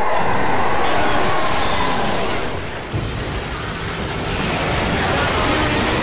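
A chainsaw revs and roars loudly.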